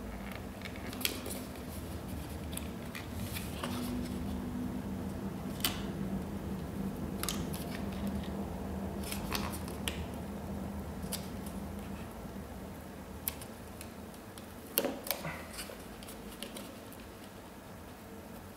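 Cardboard packaging rustles and scrapes under handling hands.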